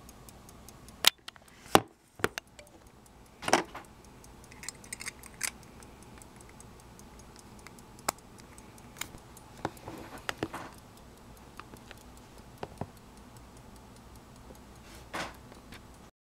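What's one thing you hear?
Small metal watch parts click and tap as fingers handle them.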